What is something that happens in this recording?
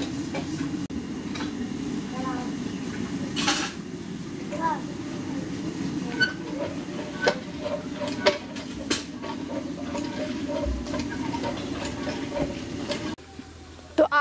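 Hands rub and knead flour in a metal pot.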